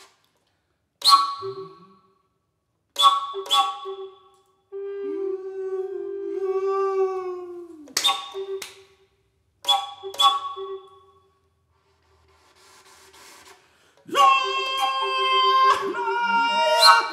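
A woodwind instrument plays sharp, short bursts and long wavering notes through a microphone.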